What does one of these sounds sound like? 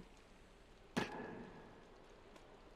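A small figure lands with a heavy thud on a soft heap.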